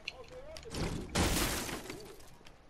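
A pickaxe strikes a wooden couch with a sharp crack.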